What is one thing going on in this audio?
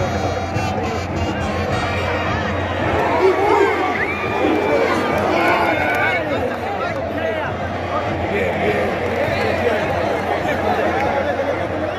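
A large stadium crowd roars, chants and whistles loudly all around.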